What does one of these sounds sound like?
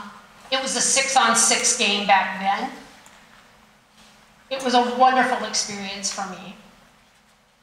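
A woman sings loudly through a microphone, in phrases with pauses.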